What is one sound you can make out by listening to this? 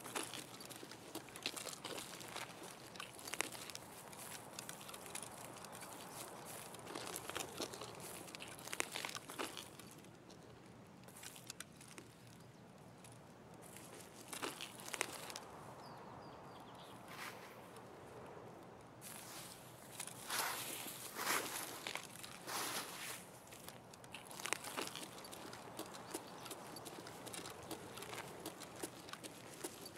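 Footsteps crunch over grass and gravel at a walking pace.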